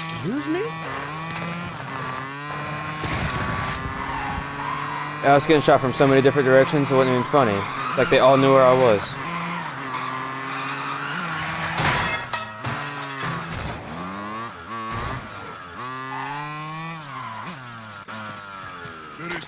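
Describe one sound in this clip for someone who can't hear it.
A motorbike engine revs, rising and falling as it speeds up and slows down.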